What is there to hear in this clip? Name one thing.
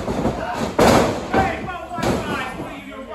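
A body thuds onto a wrestling ring mat.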